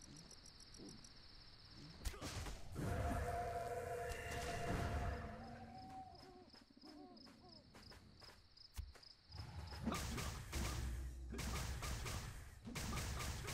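Blows and hits thud in a game fight.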